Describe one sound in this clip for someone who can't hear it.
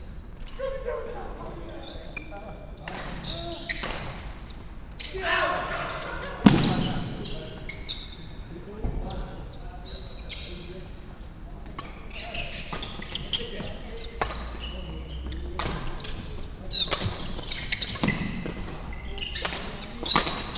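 Players' footsteps thud on a wooden court floor.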